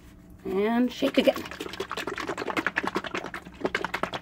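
A plastic bottle of paint is shaken hard, its contents sloshing and rattling rapidly.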